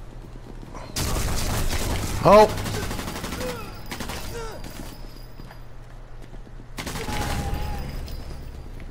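A submachine gun fires in bursts.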